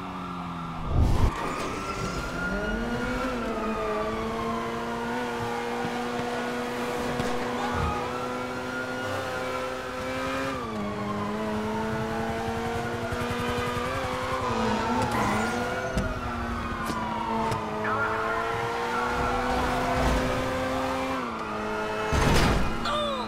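A car lands with a heavy thud.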